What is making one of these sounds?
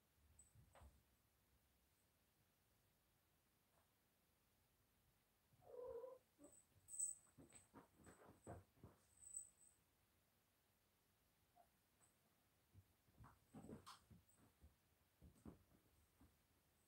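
A cat thumps and scrabbles on a wooden floor.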